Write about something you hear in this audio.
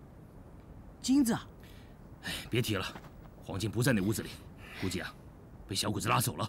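A middle-aged man speaks in a low, grim voice.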